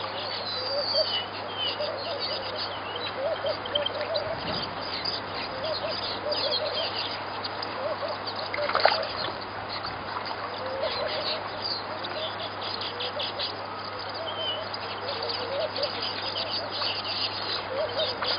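Warthogs splash and wade in shallow muddy water.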